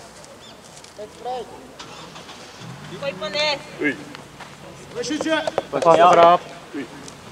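Young men shout and call out loudly at a distance, outdoors.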